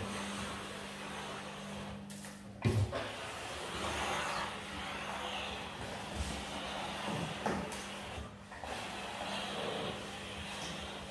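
A steam mop hisses and swishes across a tiled floor.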